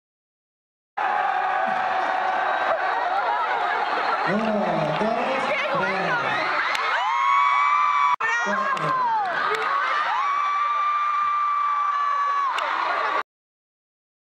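A large crowd screams and cheers in a big echoing hall.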